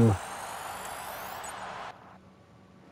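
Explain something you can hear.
A rising shimmering whoosh plays.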